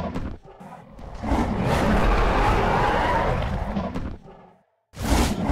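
A huge beast roars loudly and long.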